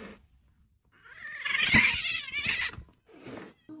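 A cat hisses.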